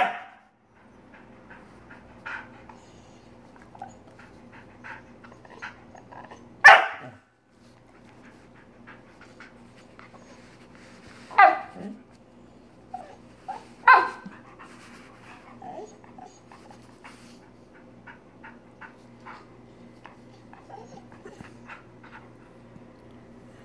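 A dog whines and grumbles softly between the yelps.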